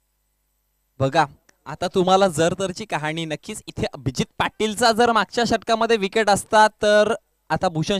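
A man commentates with animation through a microphone.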